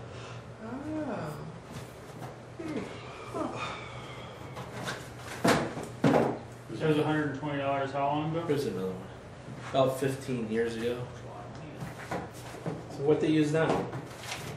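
A middle-aged man talks nearby in a relaxed, conversational way.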